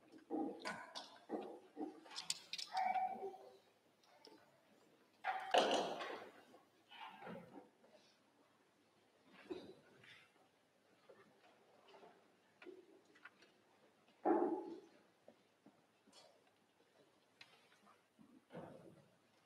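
A small string ensemble plays short, broken phrases in a hall.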